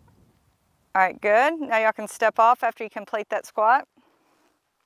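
A woman speaks clearly and calmly, close to a microphone.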